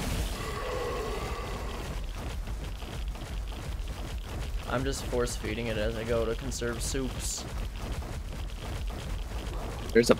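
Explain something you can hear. Footsteps thud on the ground as a large creature walks.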